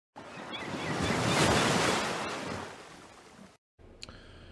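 A large ocean wave surges and crashes.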